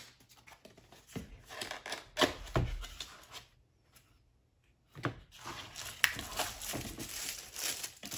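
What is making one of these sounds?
Cardboard flaps rustle and scrape.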